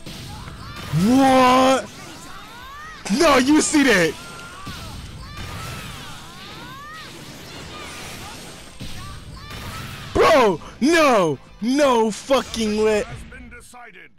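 Game characters shout battle cries loudly.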